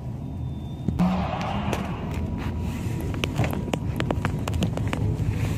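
Footsteps crunch on packed snow.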